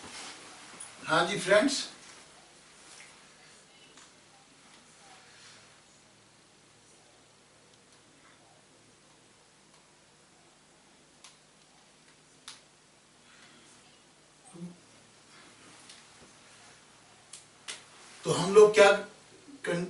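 A man speaks in short, loud bursts.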